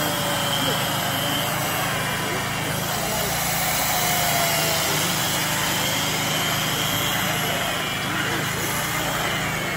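A chainsaw buzzes steadily as it cuts through ice.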